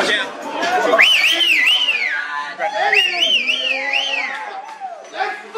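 Men cheer and whoop loudly nearby.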